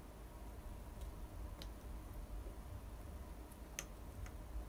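A spoon clinks against a glass while stirring.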